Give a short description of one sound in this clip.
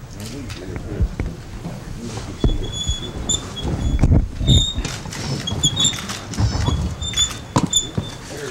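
Chairs creak and thump as men sit down.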